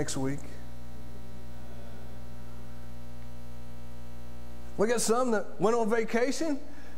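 A middle-aged man speaks calmly into a microphone in an echoing hall.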